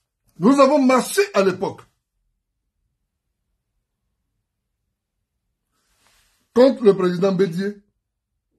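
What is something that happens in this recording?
A man speaks calmly and close up, with long pauses.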